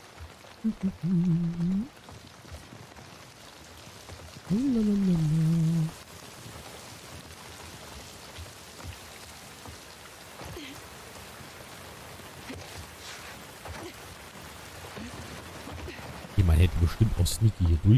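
Footsteps thud softly on wooden boards.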